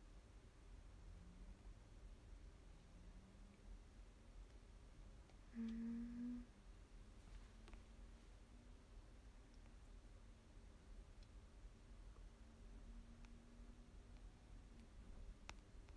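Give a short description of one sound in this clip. A young woman speaks softly, close to the microphone.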